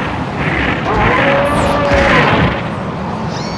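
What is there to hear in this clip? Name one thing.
A robot fires a roaring energy blast.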